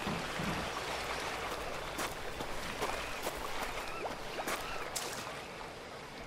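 Footsteps crunch on dry leaves.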